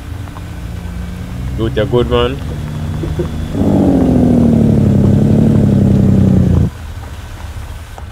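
A truck's diesel engine rumbles steadily as it climbs.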